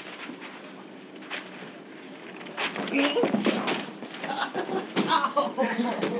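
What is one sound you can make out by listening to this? Teenage boys scuffle and bump into each other.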